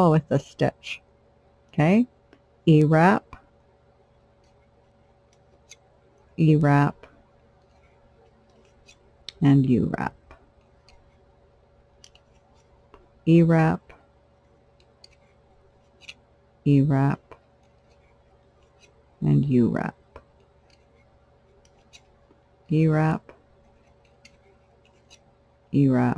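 A metal hook clicks and scrapes softly against plastic loom pegs.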